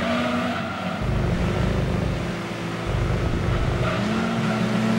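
Tyres rumble over a kerb in a sharp turn.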